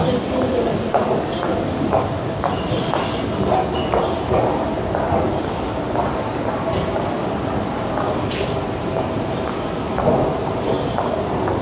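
Distant voices murmur and echo through a large indoor hall.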